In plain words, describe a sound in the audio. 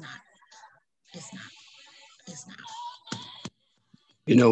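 A woman speaks quietly over an online call.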